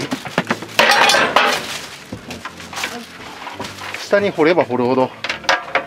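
Clutter clatters as it is shifted and dropped into a box.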